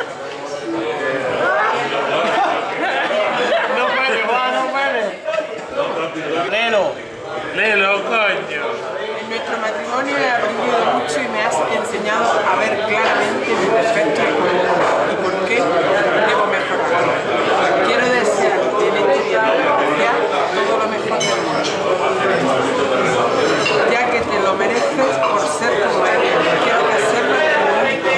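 A middle-aged woman talks and reads out close by.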